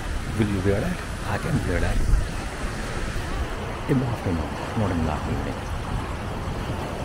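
A crowd of adults chatters at a distance outdoors.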